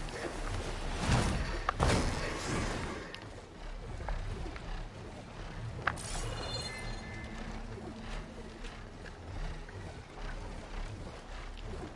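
Large wings beat with deep, rushing whooshes.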